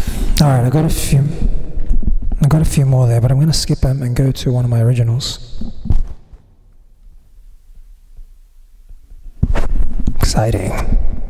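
A man sings closely into a microphone.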